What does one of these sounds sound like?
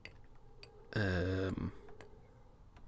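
A short burst sounds as a block drops off the edge again.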